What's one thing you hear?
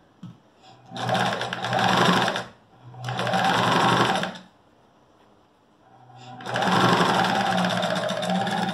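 A sewing machine whirs in short bursts, starting and stopping.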